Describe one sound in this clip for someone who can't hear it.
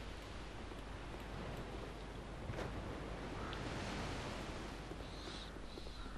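Footsteps thud softly on stone.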